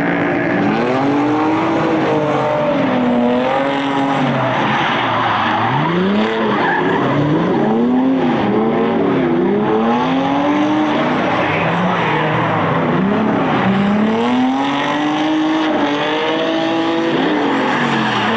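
Car engines rev hard, rising and falling in pitch.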